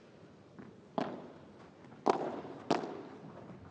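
A paddle strikes a ball with sharp pops.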